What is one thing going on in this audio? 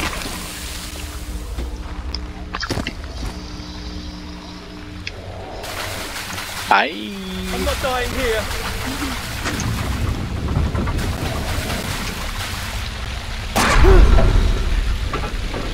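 Water splashes and sprays loudly.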